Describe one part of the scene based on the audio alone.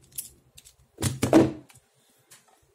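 A cardboard box thumps down on a table.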